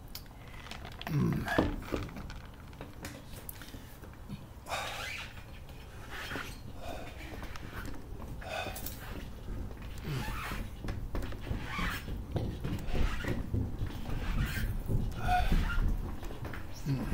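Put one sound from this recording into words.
Footsteps thud on wooden boards at a walking pace.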